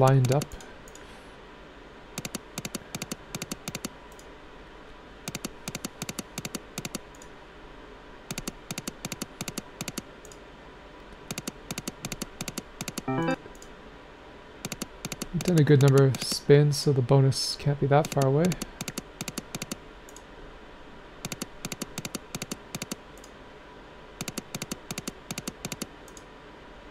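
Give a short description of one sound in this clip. Slot machine reels spin with rapid, repeated ticking clicks.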